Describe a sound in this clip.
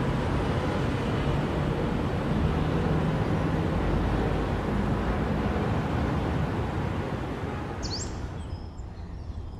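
Traffic hums steadily along a city road.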